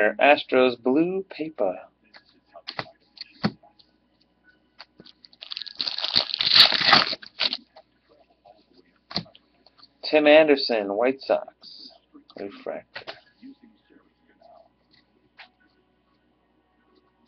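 Trading cards slide and shuffle against each other in hands.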